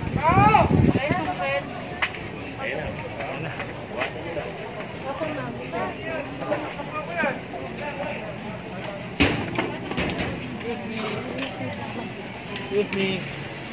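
A busy crowd murmurs and chatters outdoors.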